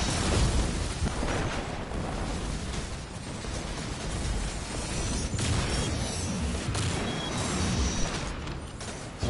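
Gunfire cracks and booms in rapid bursts.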